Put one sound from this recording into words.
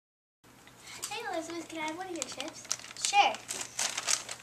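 A young girl speaks in a high, lively voice close by.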